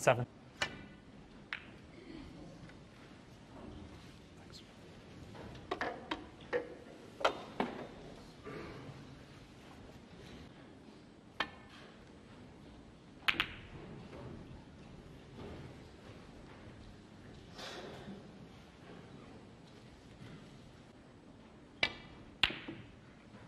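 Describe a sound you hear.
Snooker balls knock together with hard clicks.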